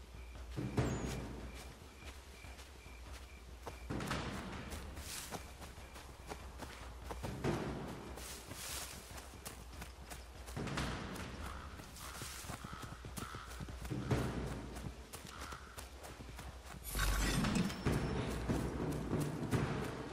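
Leafy undergrowth rustles as someone pushes through it.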